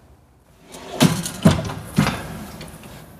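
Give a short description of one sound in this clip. Metal wire baskets clatter and click as they slide on runners.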